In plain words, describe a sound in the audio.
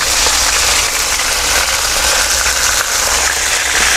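A wooden spatula scrapes against a metal pan.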